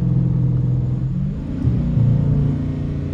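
A car engine revs up, its rumble rising in pitch.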